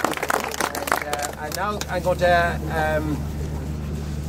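A man speaks loudly to a small gathering outdoors.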